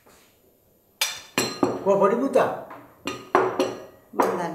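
A woman speaks firmly and with animation nearby.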